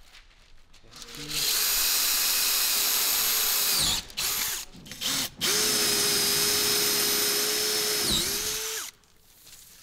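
A cordless drill whirs steadily as it bores into wood.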